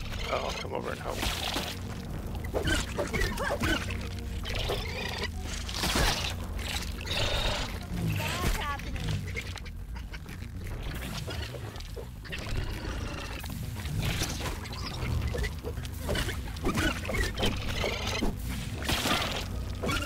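A spear thuds against a wasp in quick blows.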